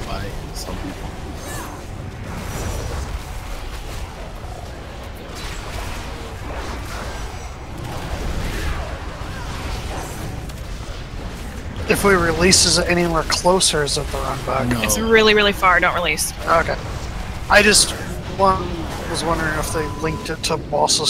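Spell effects crackle, boom and whoosh in a game battle.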